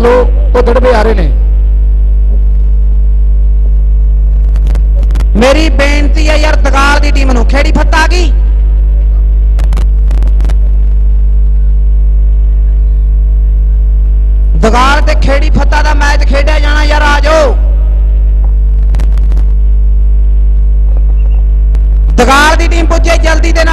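A man speaks loudly through a loudspeaker in short bursts.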